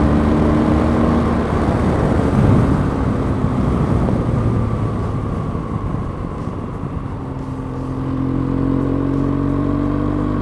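A motorcycle engine hums, easing off and then picking up again.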